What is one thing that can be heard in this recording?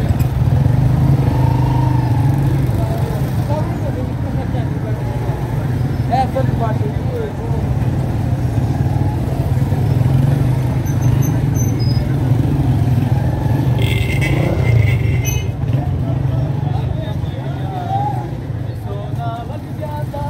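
Motorbike engines hum and pass close by.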